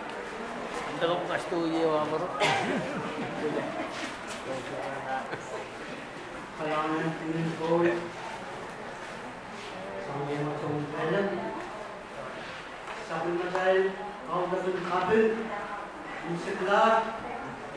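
A man speaks calmly into a microphone, heard through loudspeakers in an echoing hall.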